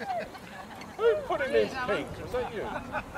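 Women in a crowd laugh briefly.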